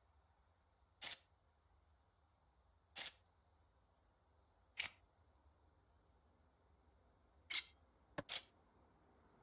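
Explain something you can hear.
Short interface clicks sound as a game menu opens and closes.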